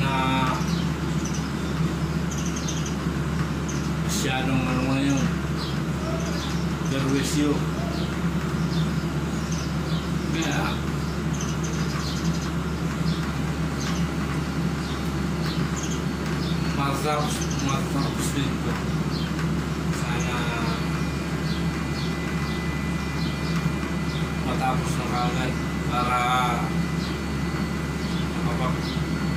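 A middle-aged man talks close to the microphone, calmly and in bursts.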